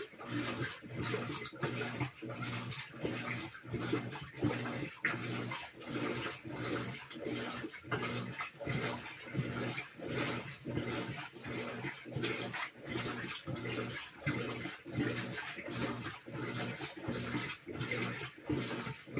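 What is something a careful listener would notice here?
A top-loading washing machine agitates its load in rhythmic strokes.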